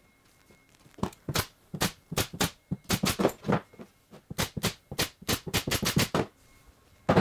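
A small hand tool clicks repeatedly against wood.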